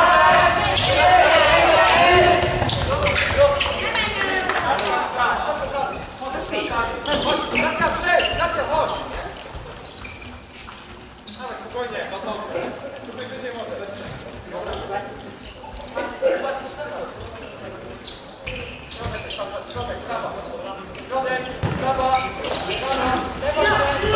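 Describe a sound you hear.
A ball thuds off players' feet in an echoing hall.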